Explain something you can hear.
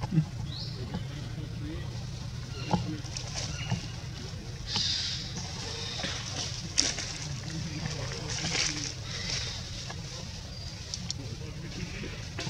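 Leaves and branches rustle as a monkey shifts about in a tree.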